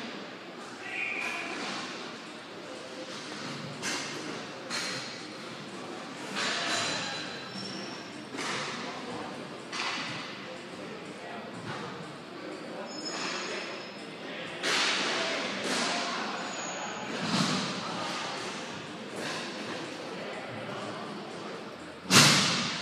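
Sticks clack against a ball in a large echoing hall.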